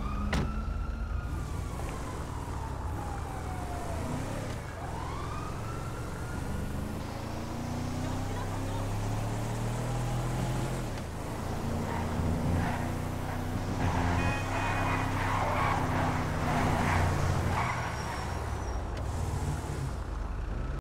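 A car engine hums steadily as the vehicle drives along.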